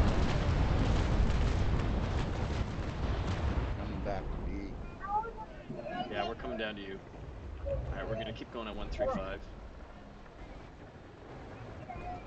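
Cannons fire in booming blasts.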